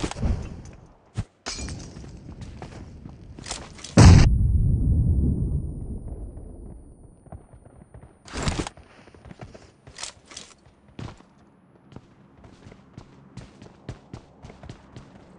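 Footsteps thud quickly across a hard roof.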